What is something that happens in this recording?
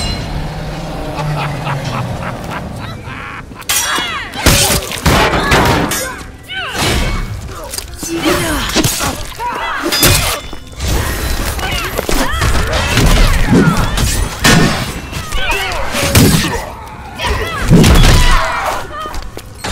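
Explosions and magic blasts boom loudly.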